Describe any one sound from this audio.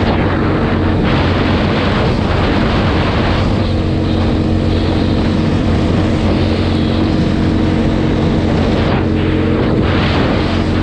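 Tyres rumble on a rough road.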